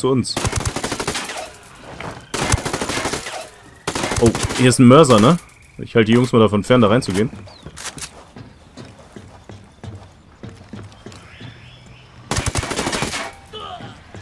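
Rapid gunfire bursts out in short, loud volleys.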